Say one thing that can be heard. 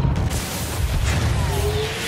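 Electric lightning crackles and buzzes.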